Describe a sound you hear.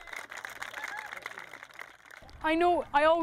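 A crowd chatters and claps outdoors.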